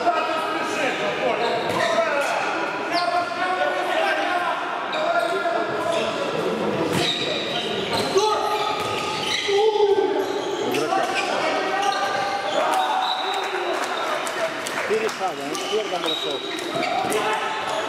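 A handball bounces on a hard indoor court in a large echoing hall.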